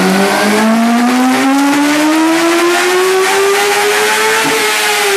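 A motorcycle engine roars loudly, its pitch climbing steadily as it revs up.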